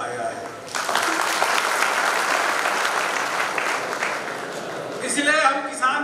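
People clap their hands in applause.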